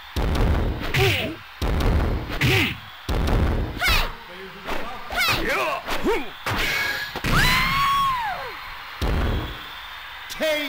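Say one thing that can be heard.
Heavy blows land with loud thuds.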